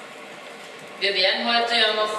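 A woman speaks through a microphone in an echoing hall.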